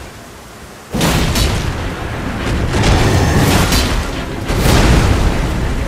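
Heavy blows crash and thud.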